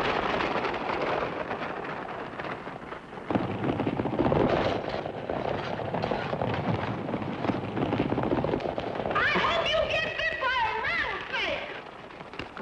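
A stagecoach rattles and creaks over rough ground.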